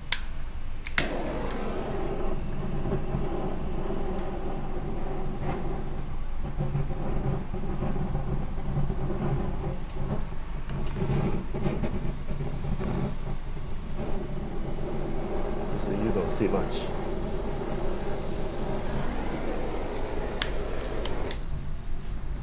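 A blowtorch roars steadily.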